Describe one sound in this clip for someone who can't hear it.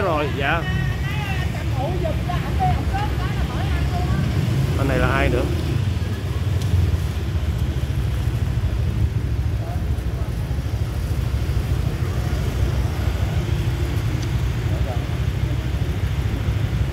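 Motorbikes hum past on a street.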